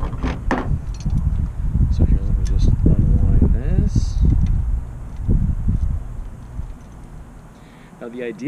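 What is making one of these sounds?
A middle-aged man talks calmly outdoors.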